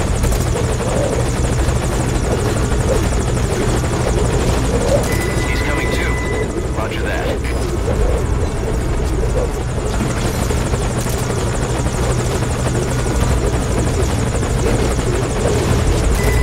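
A helicopter's rotor thumps and roars close by.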